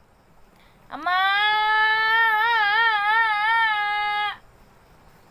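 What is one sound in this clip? A young woman sings a long, wavering note close by.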